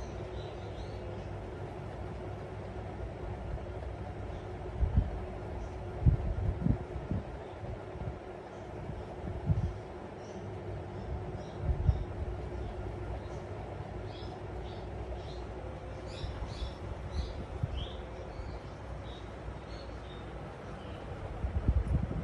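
A cockatiel chirps and whistles softly close by.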